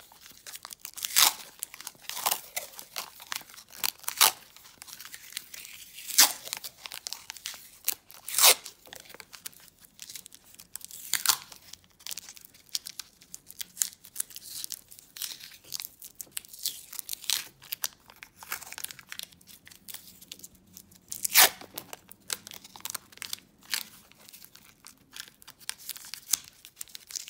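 Paper tape crinkles as fingers twist it.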